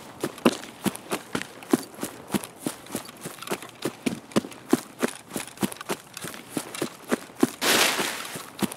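Footsteps tread quickly and evenly through grass and brush.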